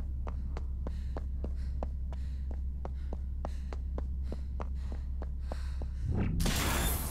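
Quick footsteps tap on a hard stone floor in a large echoing hall.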